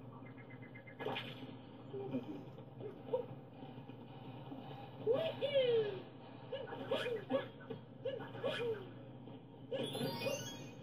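Short bouncy game sound effects bleep and chirp from a television.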